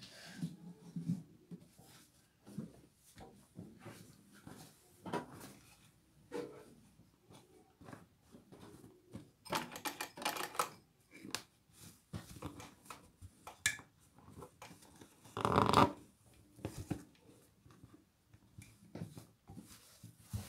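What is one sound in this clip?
Fabric rustles and crinkles as hands move it.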